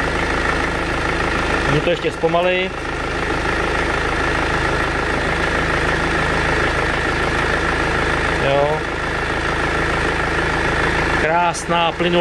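A car engine idles with a steady hum.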